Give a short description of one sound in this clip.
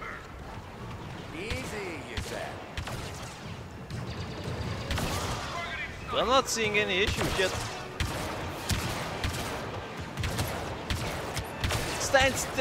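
Blaster guns fire in quick bursts.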